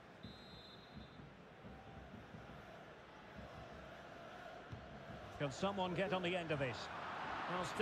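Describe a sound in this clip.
A large stadium crowd murmurs steadily and swells toward the end.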